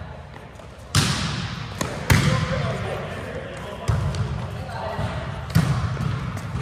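A volleyball is struck with sharp slaps in a large echoing hall.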